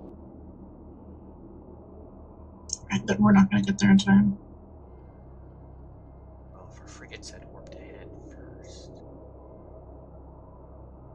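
A low spaceship engine hum drones steadily.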